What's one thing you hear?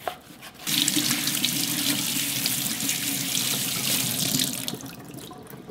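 Water runs from a tap and splashes into a sink.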